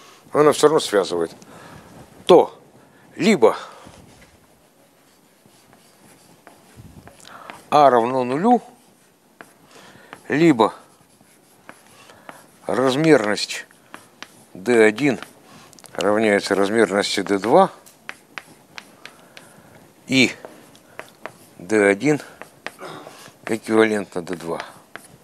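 A middle-aged man lectures in short bursts, in a room with some echo.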